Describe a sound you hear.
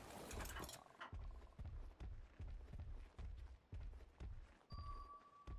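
Heavy footsteps thud on grass.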